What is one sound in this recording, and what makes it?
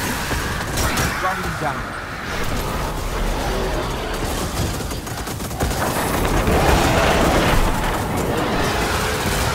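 Explosions and energy blasts boom and crackle.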